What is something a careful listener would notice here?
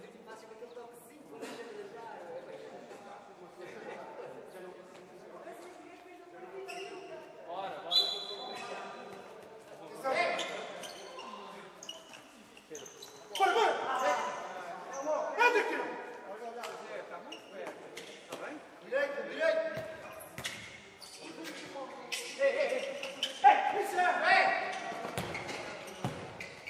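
Shoes squeak on a hard floor.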